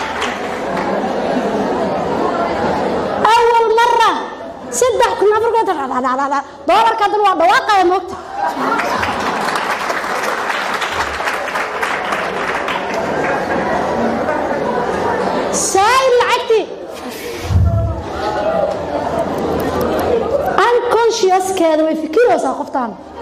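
A young woman speaks with animation into a microphone.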